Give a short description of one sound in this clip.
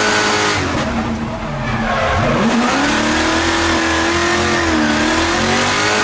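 A race car engine roars loudly from inside the cabin, dropping in pitch and then revving back up.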